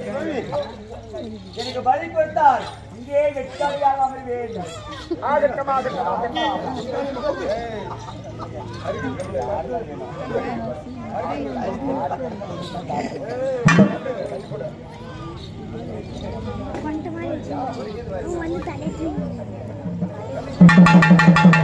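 A crowd of men and women chatter nearby.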